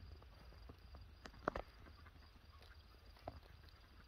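A goat's hooves patter softly on grass.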